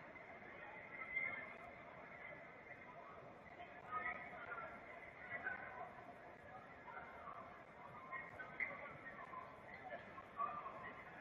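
Fans shout and whistle in the stands.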